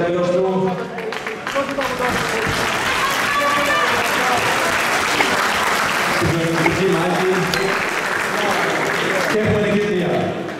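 A crowd cheers and applauds in an echoing arena.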